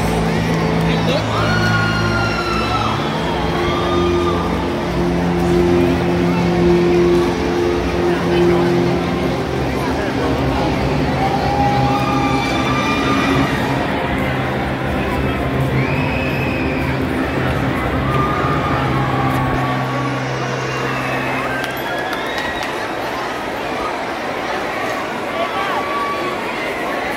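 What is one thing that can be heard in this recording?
Men and women in the crowd shout encouragement loudly.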